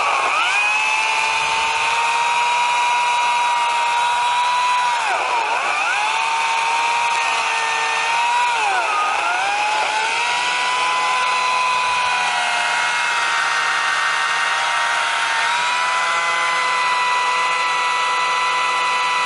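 A brush cutter engine whines loudly and steadily, dipping in pitch now and then as its blade bites into undergrowth.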